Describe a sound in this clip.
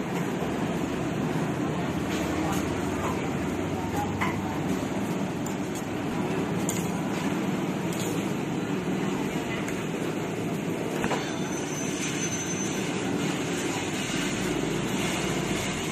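A spoon and fork scrape and clink on a plate.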